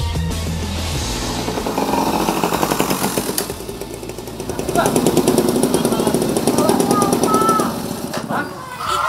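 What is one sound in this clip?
A motorbike engine idles and putters nearby.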